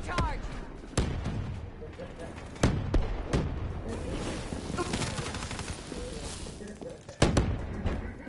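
Gunshots crack sharply, a few single shots apart.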